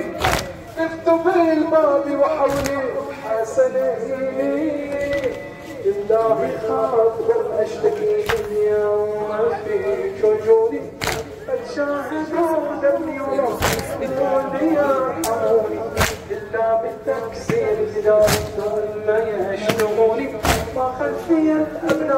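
A man chants a mournful song loudly through a loudspeaker.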